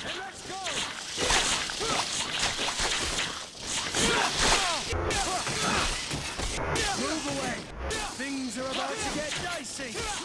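Weapons clash and strike hard in a fight.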